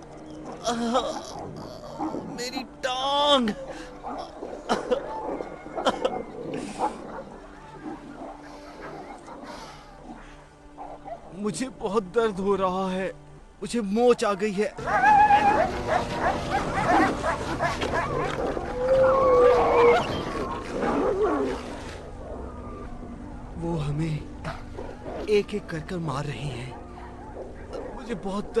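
A man groans and gasps in pain close by.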